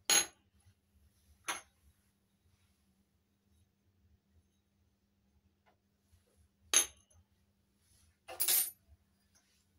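Small metal cups clink against each other.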